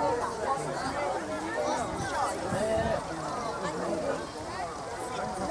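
Several men and women chat nearby outdoors, their voices overlapping.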